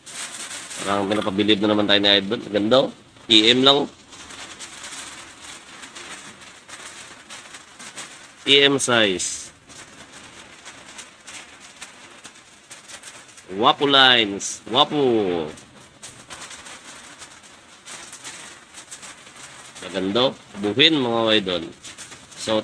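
Thin plastic bags crinkle and rustle.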